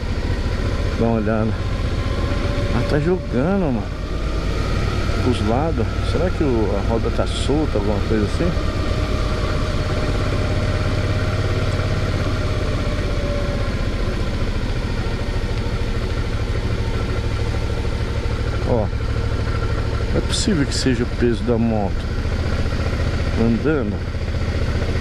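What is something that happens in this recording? A motorcycle engine revs up and down as gears change.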